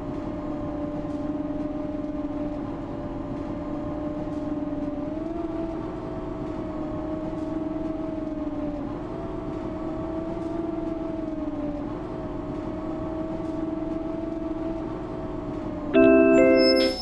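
A bus engine hums steadily as it drives.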